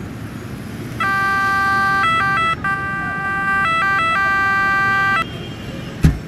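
An ambulance siren sounds in steady tones.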